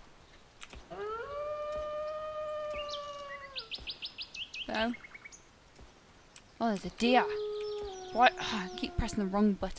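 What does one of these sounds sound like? A wolf howls in a long, wavering tone.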